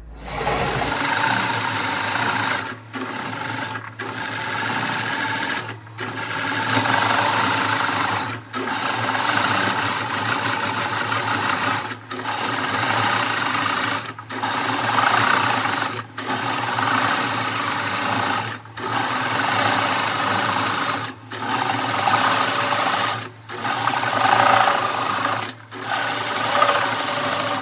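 A chisel scrapes and cuts the spinning wood in rough bursts with brief pauses.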